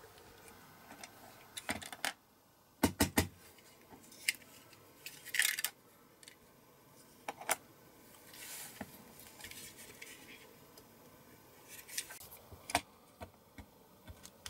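Small metal parts click and clatter on a hard surface.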